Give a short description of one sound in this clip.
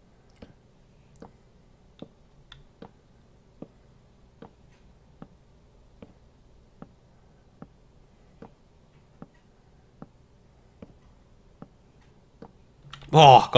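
Wooden blocks are set down with soft, regular knocks.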